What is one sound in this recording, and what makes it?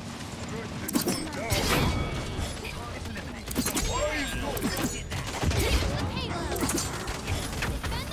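Gunfire and magic blasts crackle and boom in rapid bursts.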